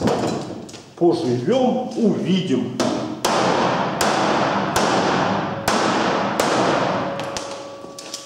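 A hammer knocks sharply on a metal panel.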